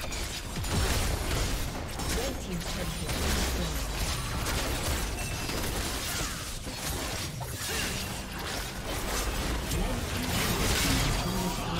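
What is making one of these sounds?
Game spell effects crackle, whoosh and blast in quick succession.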